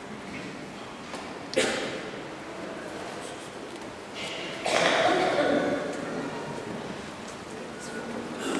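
A large congregation murmurs and shuffles in a vast echoing church.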